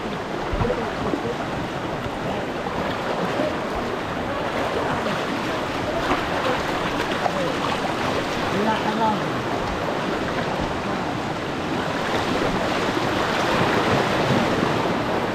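A shallow river rushes and splashes steadily over rocks close by.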